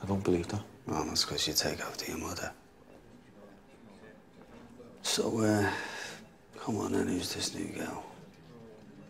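A middle-aged man speaks softly, close by.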